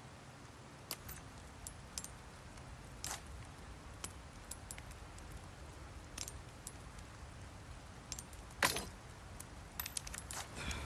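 Short clicks and chimes sound as menu items are selected.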